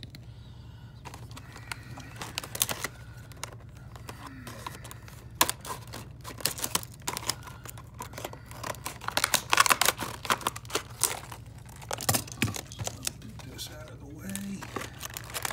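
Stiff plastic packaging crinkles and crackles as hands handle it.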